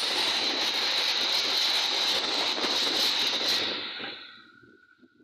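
A passenger train rumbles past close by, its wheels clattering on the rails.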